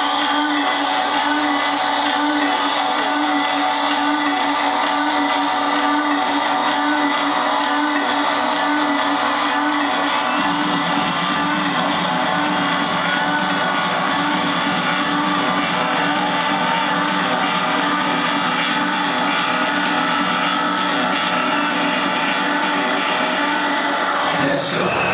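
Loud dance music plays through a large sound system, heard from within a crowd.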